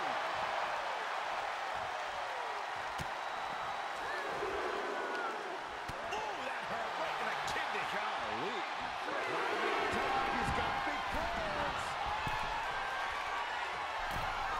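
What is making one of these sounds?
A large arena crowd cheers and roars.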